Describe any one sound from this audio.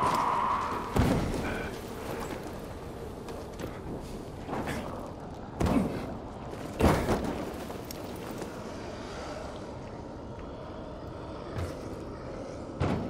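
Heavy thuds sound as a climber grabs and lands on ledges.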